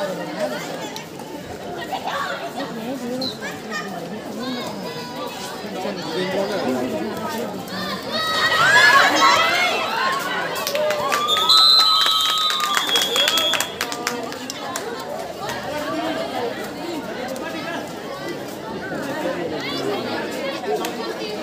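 A crowd of young spectators chatters and shouts outdoors.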